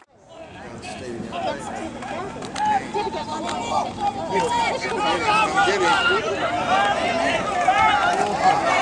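A crowd of teenage boys and adults cheers and shouts outdoors, growing louder.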